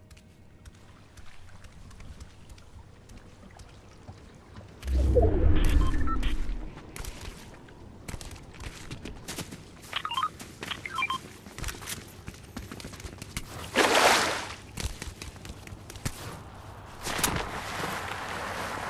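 Footsteps patter quickly on hard ground and gravel.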